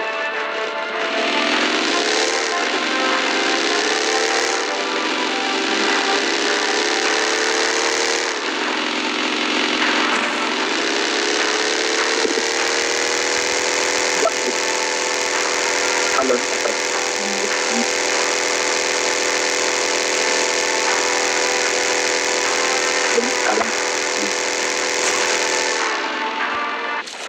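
A buggy engine roars and revs up and down.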